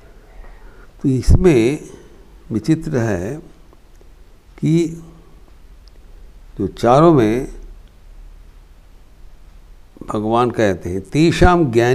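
An elderly man speaks calmly in slow phrases with pauses, close to a microphone.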